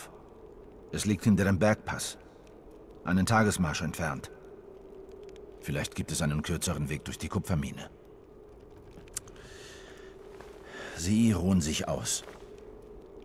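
A man speaks in a low, serious voice close by.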